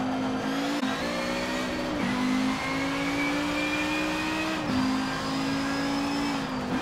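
A racing car engine roars at high revs, dropping briefly with each gear change.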